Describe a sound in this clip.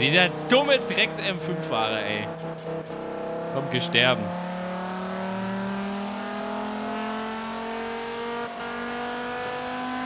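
A car engine roars, its pitch rising steadily as it speeds up.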